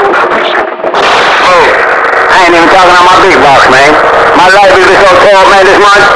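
Warbling, chirping tones sound loudly from a radio loudspeaker.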